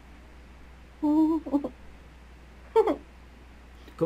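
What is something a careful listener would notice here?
A woman says a few brief words over an online call.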